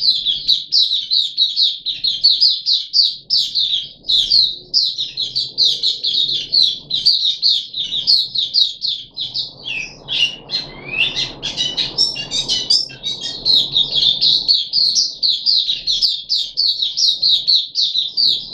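A small bird sings rapid, high, chirping trills close by.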